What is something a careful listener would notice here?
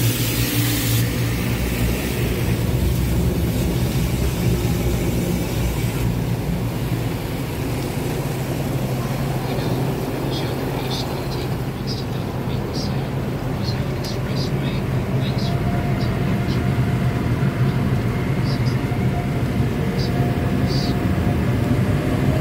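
Car wash machinery hums and rumbles steadily.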